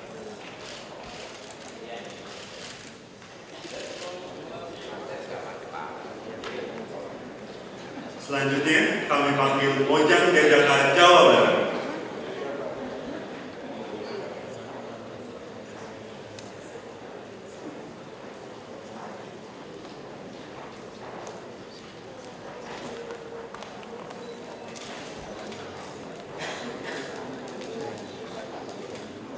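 A crowd of men and women murmurs quietly in a large room.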